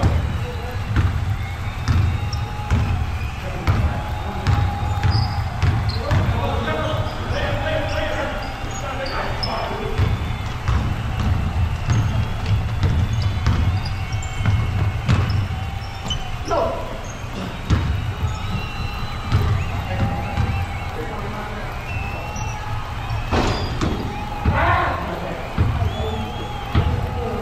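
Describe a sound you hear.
Men shout and call out to one another across the gym.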